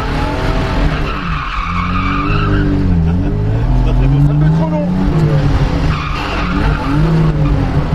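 Tyres squeal as a car slides.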